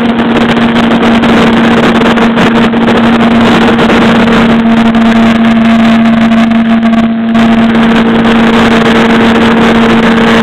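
A small model aircraft motor whines steadily at high speed.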